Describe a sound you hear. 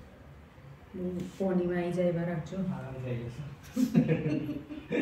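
A middle-aged woman speaks nearby, calmly.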